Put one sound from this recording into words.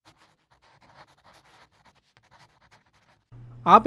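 A marker squeaks and scratches across a whiteboard.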